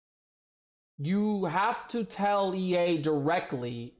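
A man speaks loudly and with animation into a close microphone.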